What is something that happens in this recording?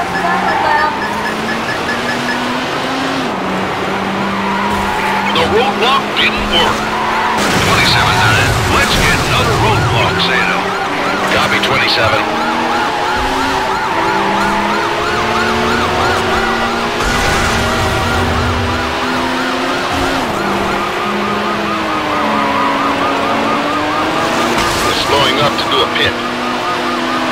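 A racing car engine roars and shifts pitch as it speeds up.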